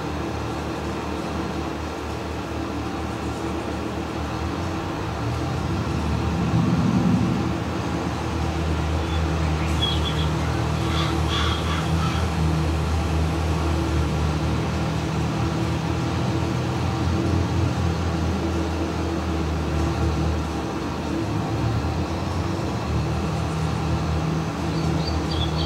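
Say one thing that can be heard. A tractor engine rumbles steadily, growing louder as it drives.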